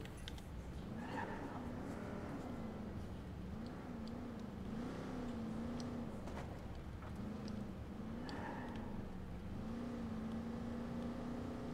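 A car engine hums and revs as a car drives off.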